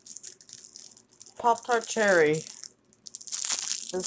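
A plastic wrapper crinkles in a hand.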